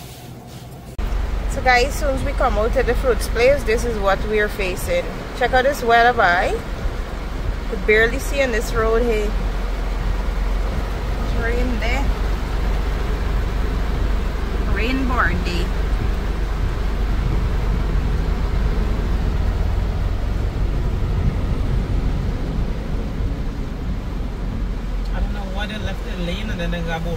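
Rain drums steadily on a car's roof and windshield.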